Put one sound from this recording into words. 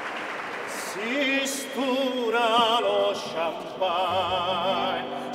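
A man sings loudly into a microphone with vibrato.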